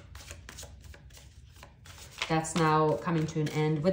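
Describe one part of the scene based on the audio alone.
A playing card slides softly across a table.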